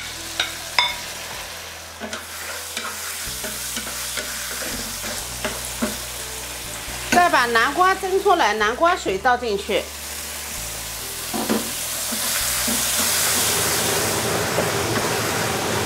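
Shrimp sizzle and crackle in hot oil.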